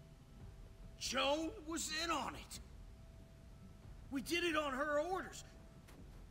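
A man pleads nervously.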